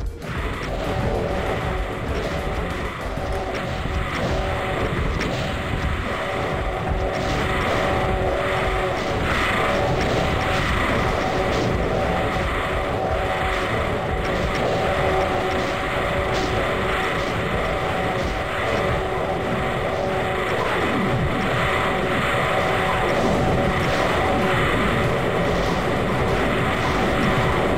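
Demonic monsters roar and growl in a crowded fight.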